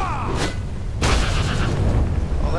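A small flask bursts with a sharp pop.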